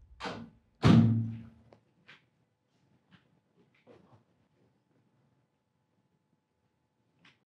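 Footsteps pad slowly across a floor.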